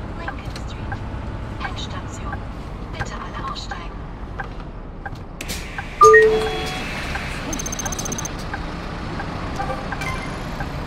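A bus engine hums steadily while driving.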